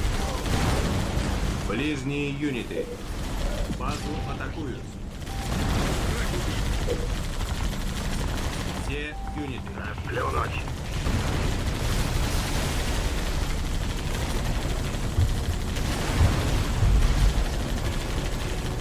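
Guns fire in a noisy battle.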